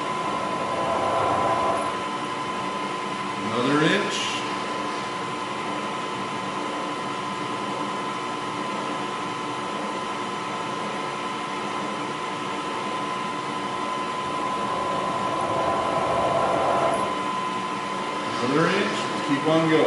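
A milling machine spindle whirs steadily with a high hum.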